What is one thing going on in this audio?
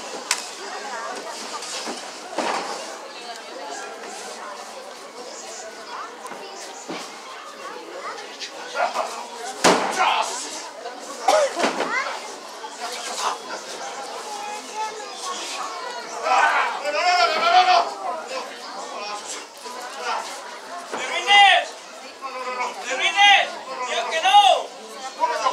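A crowd of men and women shouts and cheers close by in an echoing hall.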